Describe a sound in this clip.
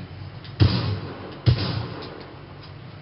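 Gunshots boom loudly and echo.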